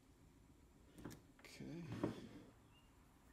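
Battery packs knock and rattle against a table as they are moved.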